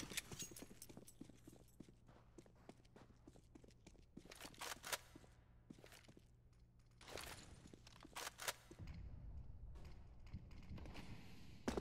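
Footsteps patter quickly across stone.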